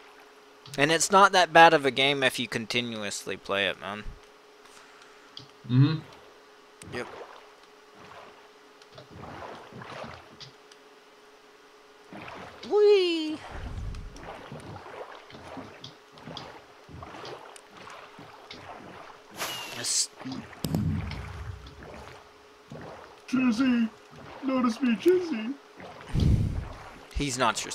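Oars splash softly as a small boat paddles through water.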